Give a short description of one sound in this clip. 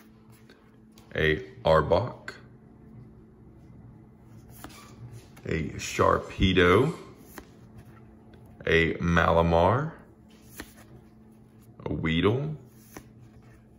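Playing cards rustle and slide softly as they are flipped through by hand.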